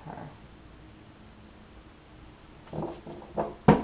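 A hand slides off cards lying on a table.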